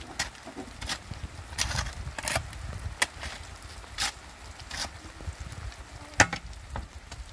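A shovel scrapes through wet soil and gravel.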